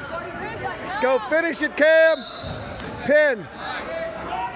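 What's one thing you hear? Men and women shout loudly from close by.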